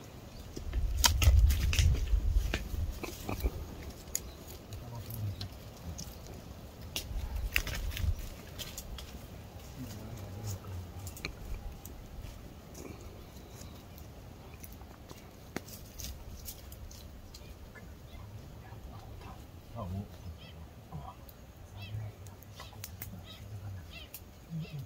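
Twigs snap and crack.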